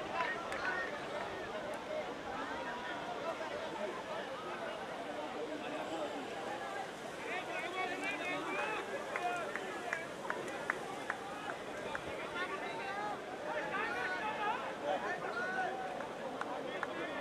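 A crowd chatters and calls out outdoors.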